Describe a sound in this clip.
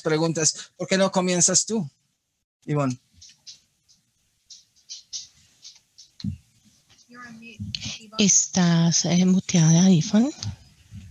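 A woman speaks warmly and with animation over an online call.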